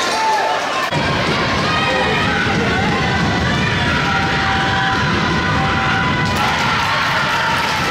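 Young women cheerleaders chant and yell in unison.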